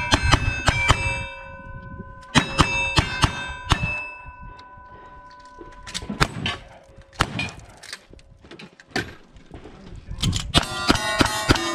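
Gunshots crack repeatedly outdoors and ring out.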